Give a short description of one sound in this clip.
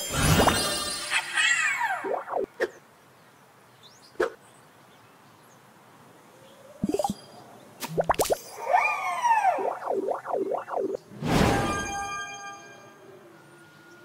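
Bright game sound effects chime and whoosh.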